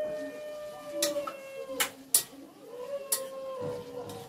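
A metal spatula clatters against a pan.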